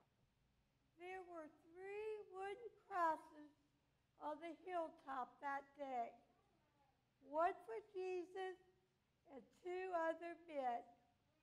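An older man speaks calmly to an audience.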